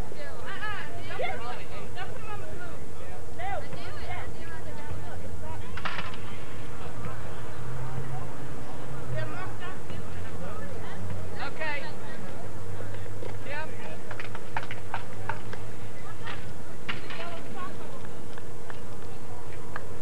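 A group of young people chatter and call out on a sports field outdoors.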